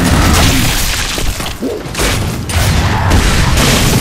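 Gunfire rattles in bursts.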